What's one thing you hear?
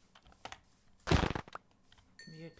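A blow thuds against a pig.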